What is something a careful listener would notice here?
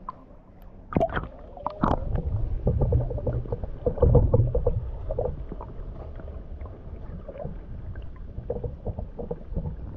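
Water gurgles and rumbles, muffled, underwater.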